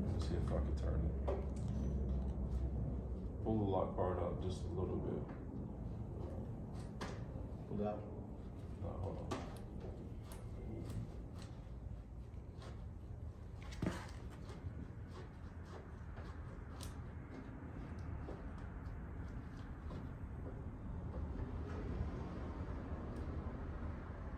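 Plastic door trim clicks and knocks as hands work on it.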